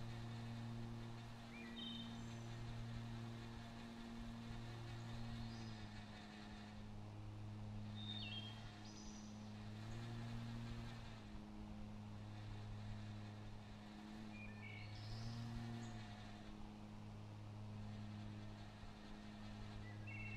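A riding lawn mower engine hums steadily, rising and falling slightly as it drives.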